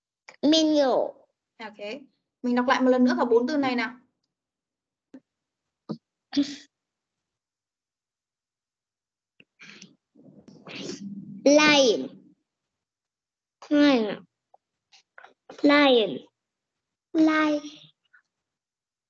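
A woman speaks slowly and clearly over an online call.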